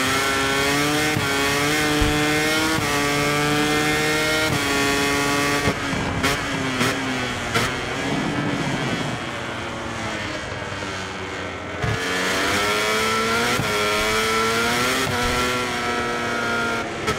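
A motorcycle engine screams at high revs, rising through the gears.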